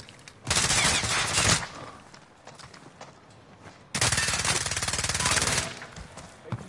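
Rapid automatic gunfire rattles in two loud bursts.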